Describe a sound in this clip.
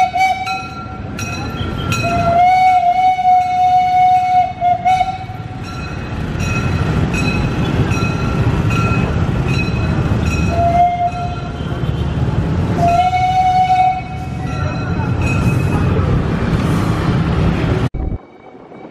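A passing train rumbles and clatters along the tracks.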